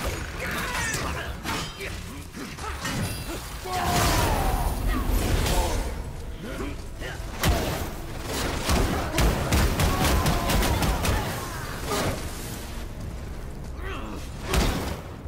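Heavy blows and crashes land again and again in a fight.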